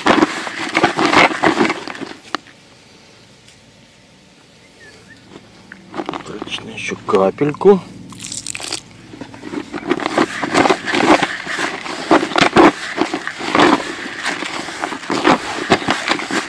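Hands rub and crumble dry soil in a plastic bucket, with a gritty rustling.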